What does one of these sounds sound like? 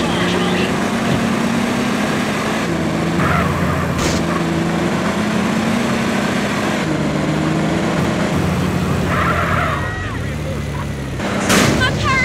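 A car engine drones steadily as the car drives along.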